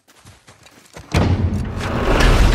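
A heavy iron gate rattles and grinds.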